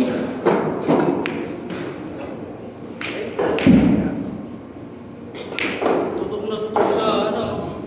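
Billiard balls clack against each other and thud against the cushions.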